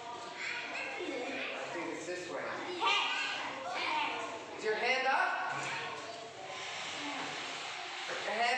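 A young girl speaks up clearly nearby.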